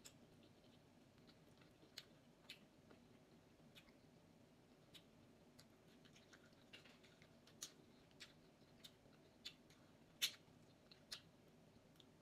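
Fingers and a spoon tap and scrape against a plate with small clicks.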